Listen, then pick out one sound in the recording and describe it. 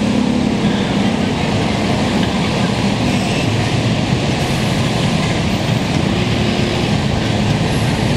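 A diesel city bus idles close by.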